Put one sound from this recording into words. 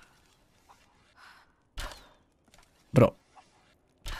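A bowstring twangs as an arrow is shot.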